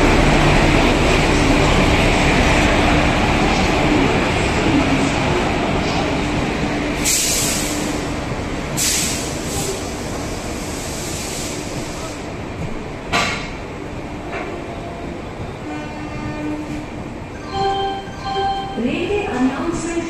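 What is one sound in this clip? A train rumbles and clatters past on the rails, slowly fading.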